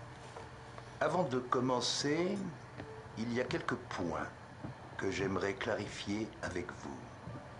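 A middle-aged man speaks slowly and calmly.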